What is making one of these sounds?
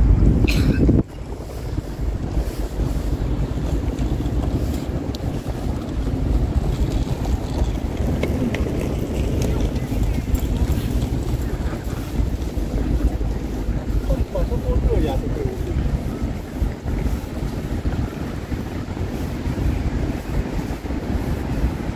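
Light rain patters steadily on wet pavement.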